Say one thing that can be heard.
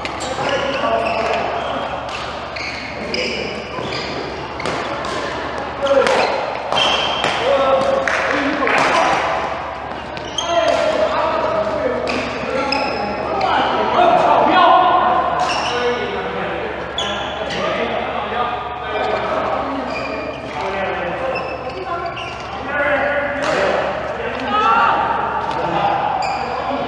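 Shoes squeak on a hard court in a large echoing hall.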